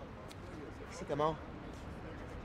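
A man speaks briefly in a short question.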